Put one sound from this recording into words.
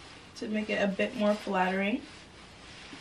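A young woman speaks briefly and animatedly, close by.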